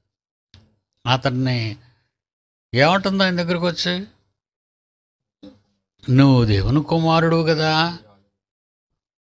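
An elderly man speaks slowly and deliberately into a close microphone, with long pauses.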